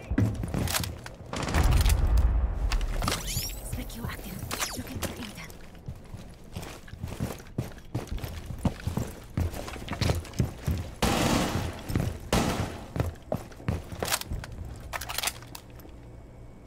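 Footsteps tread quickly across a hard floor.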